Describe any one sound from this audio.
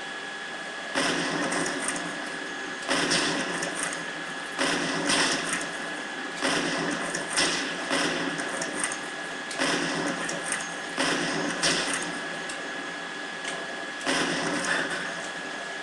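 Sniper rifle shots boom from a video game through a loudspeaker.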